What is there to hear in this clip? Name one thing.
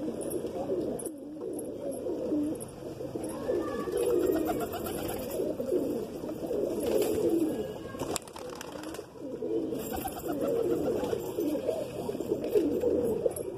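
A large flock of pigeons coos continuously close by.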